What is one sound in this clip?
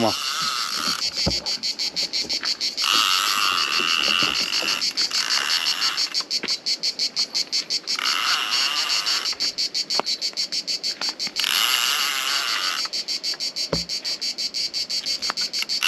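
A fishing reel clicks rapidly as it is wound in.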